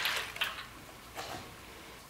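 Liquid pours into a pot of water.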